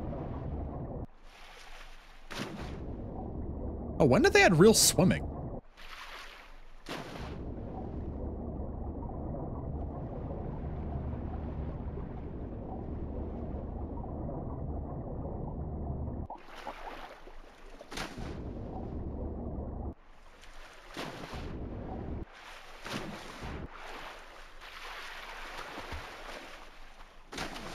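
Water splashes and laps as a swimmer breaks the surface.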